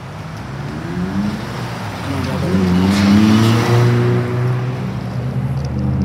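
A delivery truck's engine rumbles as it drives by.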